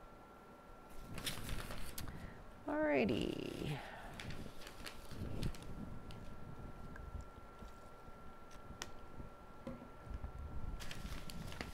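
Newspaper pages rustle and crinkle as they are handled and folded.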